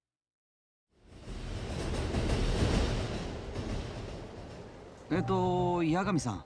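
A train hums and rumbles nearby.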